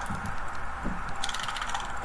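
Magic spell effects whoosh and crackle in a fight.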